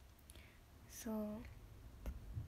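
A young woman briefly hums close by.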